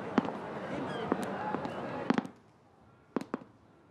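Footsteps sound on a wooden floor.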